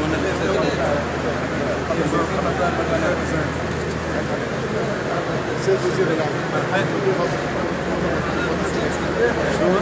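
A middle-aged man speaks calmly close by.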